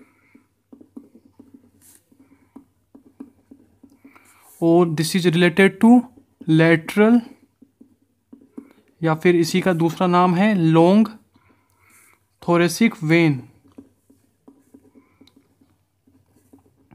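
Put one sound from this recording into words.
A marker pen scratches softly on paper.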